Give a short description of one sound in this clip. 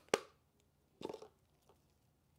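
A plastic cup is set down on cardboard with a soft tap.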